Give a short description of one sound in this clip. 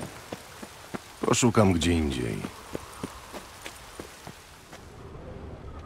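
Footsteps crunch steadily on stone and gravel.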